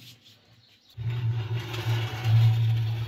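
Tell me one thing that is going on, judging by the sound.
A metal baking tray scrapes as it slides out of an oven.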